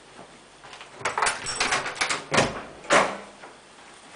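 A door handle rattles and a door bangs open close by.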